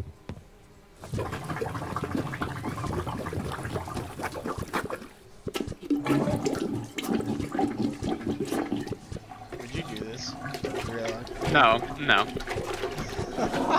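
A plunger squelches and splashes in a toilet.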